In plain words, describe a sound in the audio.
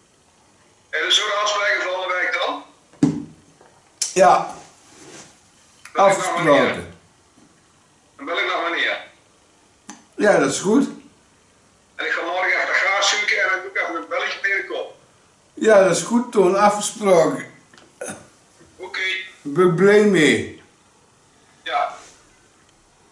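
A middle-aged man speaks close by in bursts, pausing between phrases.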